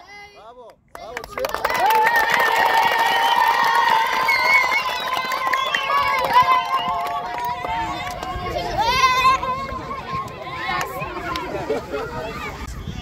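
A group of children chants and sings loudly together.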